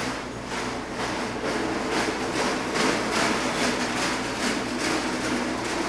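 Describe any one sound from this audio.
A cart rattles as it is pushed across a floor.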